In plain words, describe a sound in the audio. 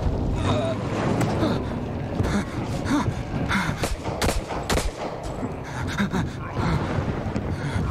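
Heavy thuds ring out as a man kicks at a metal box.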